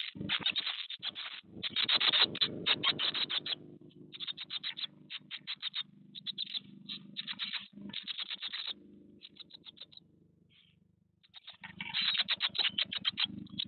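Nestling birds rustle and shuffle against nest straw.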